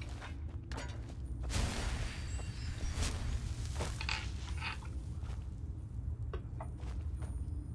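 A magic spell crackles and hums.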